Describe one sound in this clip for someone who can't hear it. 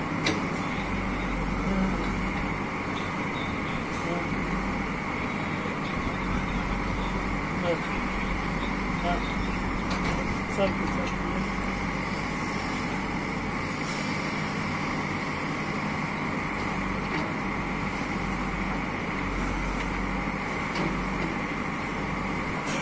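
A backhoe loader's diesel engine rumbles steadily nearby.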